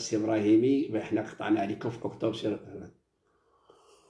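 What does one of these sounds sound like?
A middle-aged man speaks close by with animation.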